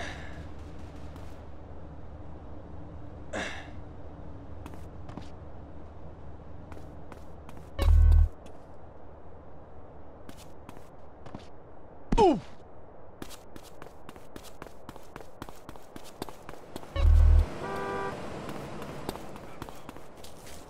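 Quick footsteps patter as a man runs.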